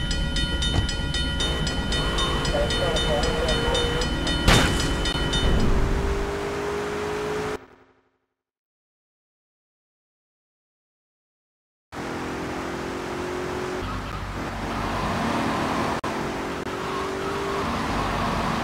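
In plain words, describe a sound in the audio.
A car engine hums as a car drives along a road.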